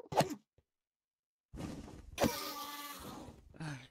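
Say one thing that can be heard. A creature cries out in pain.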